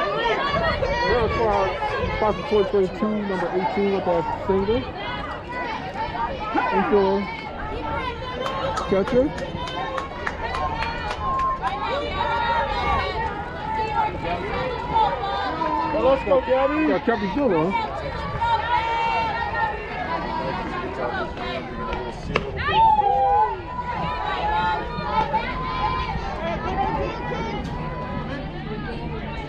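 Young women call out to one another across an open field.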